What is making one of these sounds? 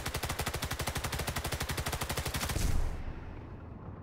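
A rifle fires once with a loud bang.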